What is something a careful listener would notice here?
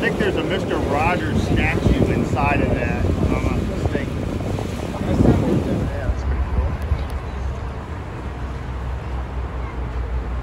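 Water splashes softly against a moving boat.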